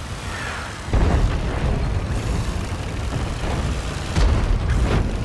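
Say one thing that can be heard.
A tank cannon fires with a heavy boom.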